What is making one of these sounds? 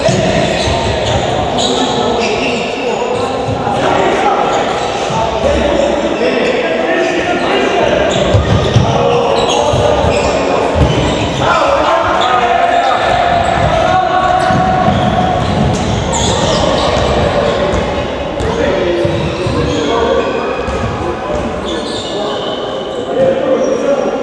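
Players' shoes squeak on a hard court in a large echoing hall.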